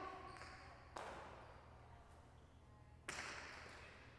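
A hard ball smacks against a wall and echoes through a large hall.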